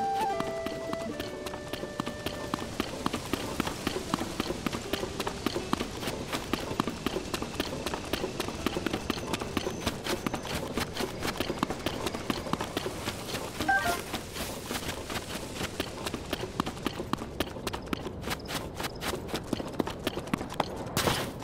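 Quick footsteps run over sand and rock.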